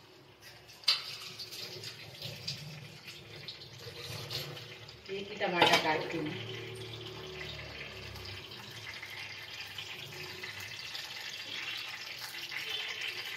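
Onions sizzle in hot oil in a pan.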